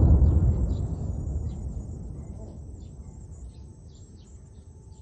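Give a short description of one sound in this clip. A heavy explosion booms in the distance and rumbles away slowly.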